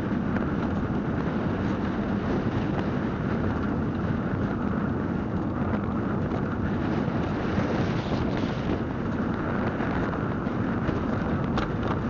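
Wind rushes steadily past a moving vehicle.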